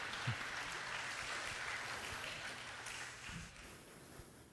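Water splashes and sloshes in a pool.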